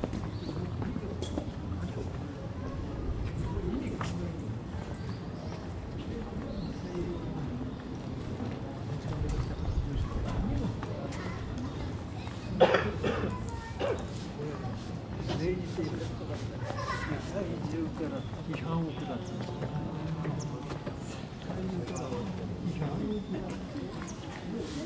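People chatter in the distance outdoors.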